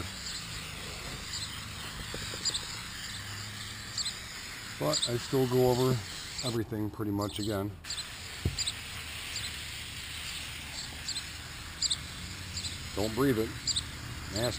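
A spray can hisses.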